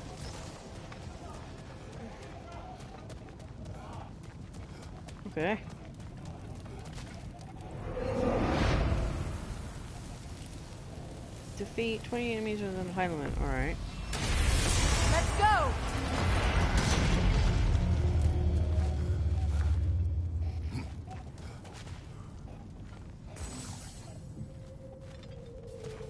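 Heavy footsteps crunch on stony ground.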